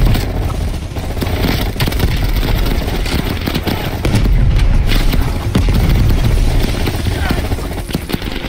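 Gunfire cracks and booms nearby in rapid bursts.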